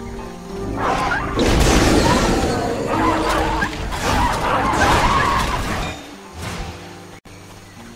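Weapons clash and magic spells burst in a loud fight.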